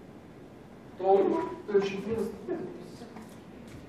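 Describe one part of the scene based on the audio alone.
A man speaks briefly in a large echoing room.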